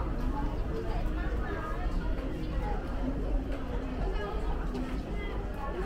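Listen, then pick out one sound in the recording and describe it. A crowd of men and women chatter all around, indoors.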